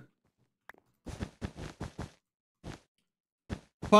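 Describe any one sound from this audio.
Blocks are placed with quick soft clicks.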